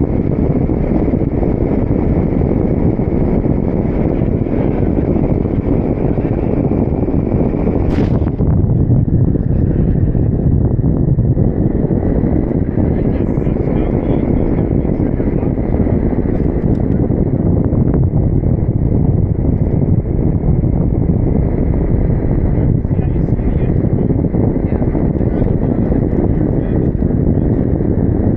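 Strong wind roars steadily over a microphone high in the open air.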